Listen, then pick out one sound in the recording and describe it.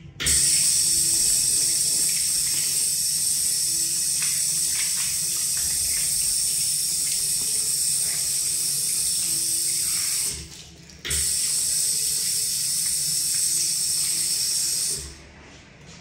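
Water runs from a tap and splashes over a hand into a basin.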